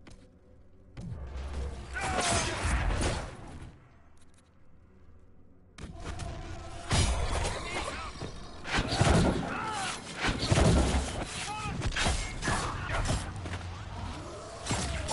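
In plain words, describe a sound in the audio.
Fire spells roar and crackle in bursts.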